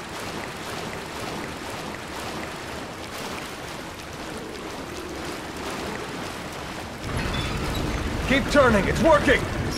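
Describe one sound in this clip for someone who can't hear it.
Water sloshes and splashes as someone wades through it.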